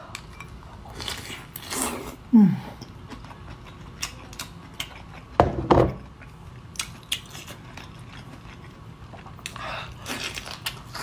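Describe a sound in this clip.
A young woman slurps and chews food noisily.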